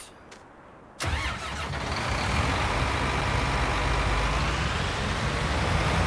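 A tractor engine starts and idles with a steady low rumble.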